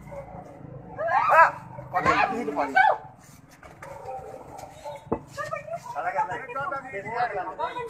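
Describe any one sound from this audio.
Men and women shout excitedly nearby.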